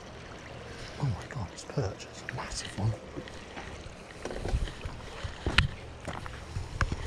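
A fishing reel clicks and rattles as a rod is handled close by.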